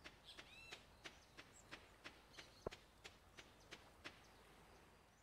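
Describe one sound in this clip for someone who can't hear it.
Footsteps patter steadily on sand.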